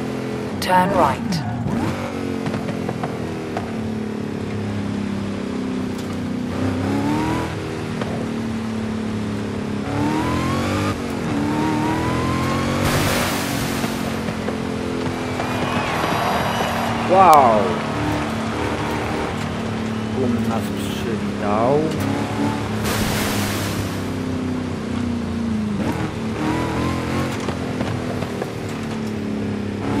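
A car engine roars steadily, rising and falling in pitch.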